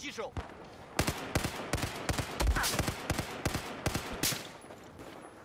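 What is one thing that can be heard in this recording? A rifle fires rapid shots up close.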